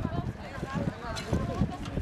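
People talk in a murmuring crowd outdoors.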